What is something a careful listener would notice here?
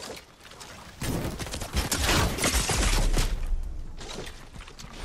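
A bow string draws and an arrow whooshes away.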